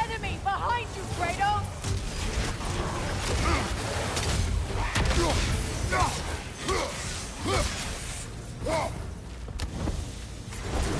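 Weapons clash and strike in a fast fight.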